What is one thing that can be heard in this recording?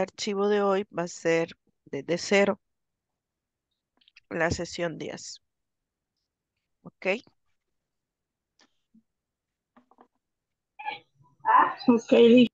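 A young woman speaks calmly over an online call, in short phrases with pauses.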